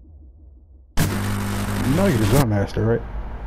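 Loud static hisses in a short burst.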